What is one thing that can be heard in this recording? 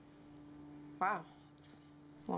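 A young woman speaks briefly and quietly at close range.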